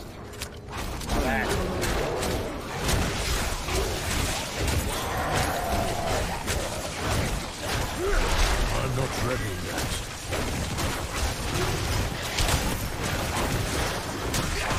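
Blows and impacts land rapidly in a fierce fight.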